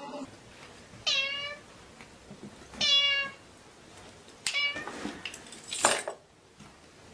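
A cat meows several times.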